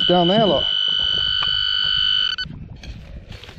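A metal detector beeps with a steady high tone.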